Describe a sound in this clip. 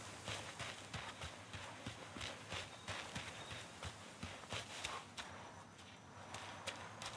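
Running footsteps thud quickly over grass and dirt.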